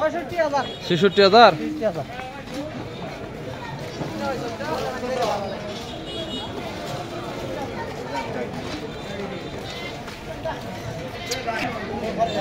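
A crowd of men chatters all around outdoors.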